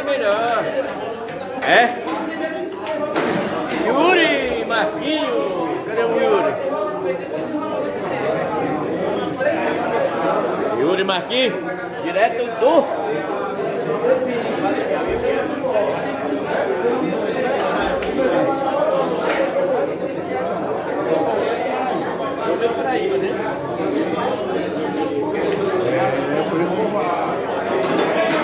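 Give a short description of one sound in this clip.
Several young men talk and call out loudly nearby, overlapping one another.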